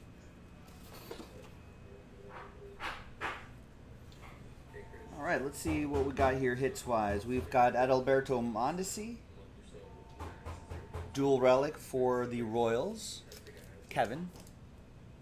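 Cards slide and tap against a table.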